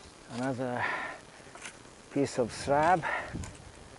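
A shovel scrapes and digs into soil.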